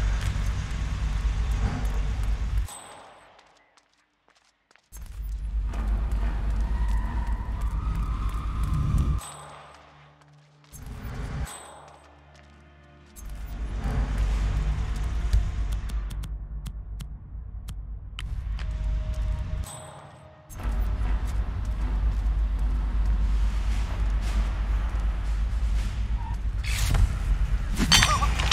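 Quick footsteps patter on a concrete floor.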